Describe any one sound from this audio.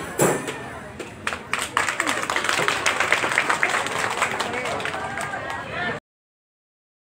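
A crowd of young people cheers and shouts excitedly close by.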